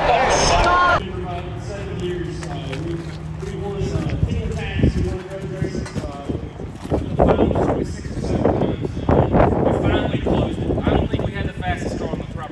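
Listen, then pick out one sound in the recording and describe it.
Several men chat nearby outdoors.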